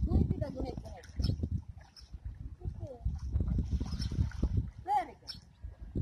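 Water splashes as a child kicks while swimming.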